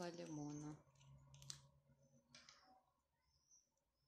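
A small plastic cap is set down on a table with a light tap.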